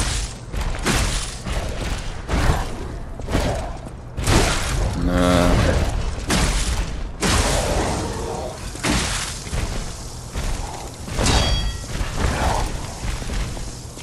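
Electric sparks crackle in short bursts.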